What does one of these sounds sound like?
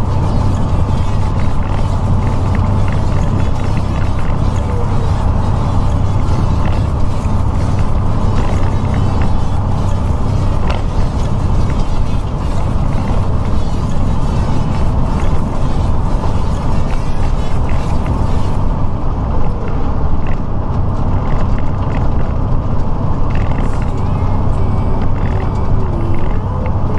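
A truck engine drones steadily at speed.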